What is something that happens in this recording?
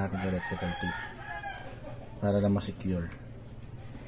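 A plastic wire connector clicks into place.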